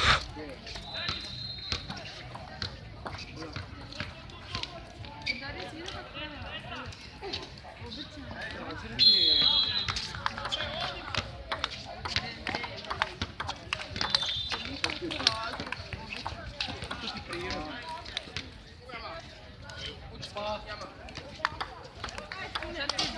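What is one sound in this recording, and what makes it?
A ping-pong ball clicks sharply back and forth on paddles and a table.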